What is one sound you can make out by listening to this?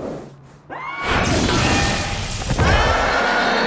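Electricity crackles and sizzles loudly.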